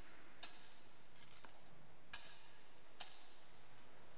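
Footsteps tap on a stone floor in a large echoing hall.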